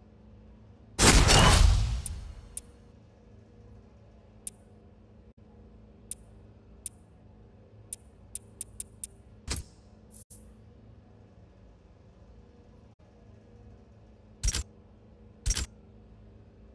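Short electronic menu clicks tick as selections change.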